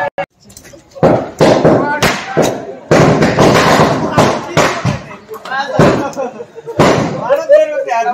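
Firecrackers burst and crackle loudly outdoors.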